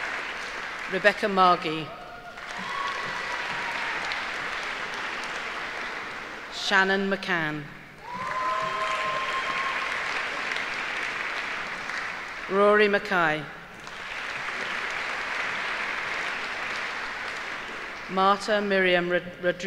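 A middle-aged woman reads out names through a microphone in a large echoing hall.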